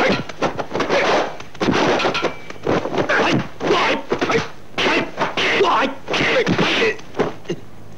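Punches and blows land with sharp smacks.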